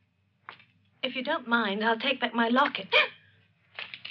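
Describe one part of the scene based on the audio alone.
A young woman speaks softly and anxiously nearby.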